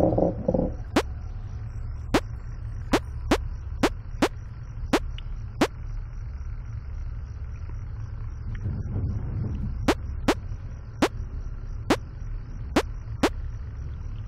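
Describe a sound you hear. A computer mouse clicks sharply, again and again.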